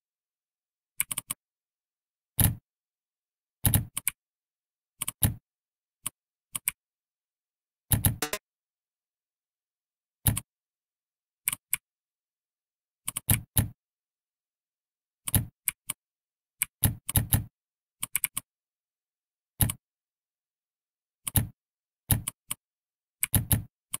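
Game sound effects click and pop as letters are typed.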